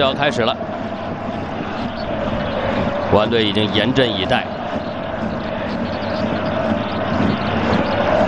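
A large stadium crowd murmurs and roars steadily in the open air.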